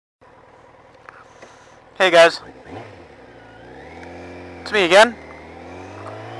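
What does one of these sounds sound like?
A motorcycle engine idles close by and rises slightly in pitch.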